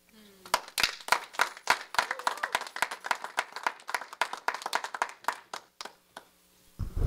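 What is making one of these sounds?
A small group of people applaud in a room.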